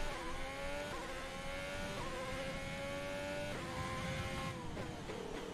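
A racing car engine screams at high revs, climbing in pitch through quick gear shifts.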